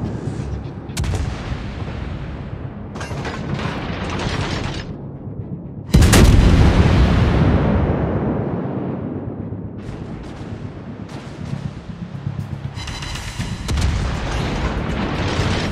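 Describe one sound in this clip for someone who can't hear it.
Shells explode in distant dull blasts.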